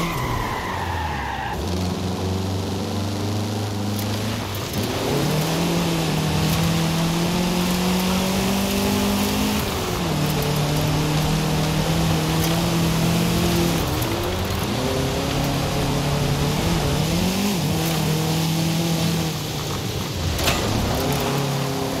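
A sports car engine revs and roars, rising and falling with gear changes.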